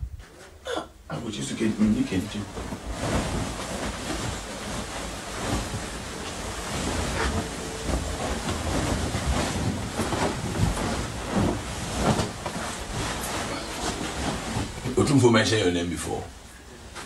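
A duvet rustles and flaps as it is shaken.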